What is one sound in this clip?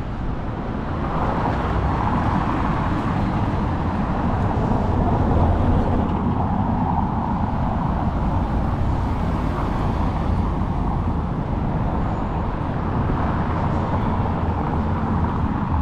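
Cars drive past, their tyres rumbling over cobblestones.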